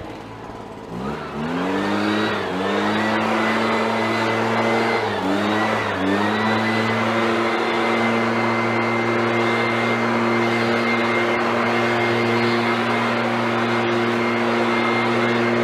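A leaf blower revs up and roars steadily with a high whine.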